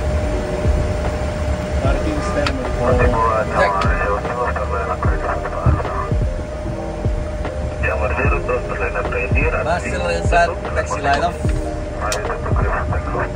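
An aircraft engine hums steadily.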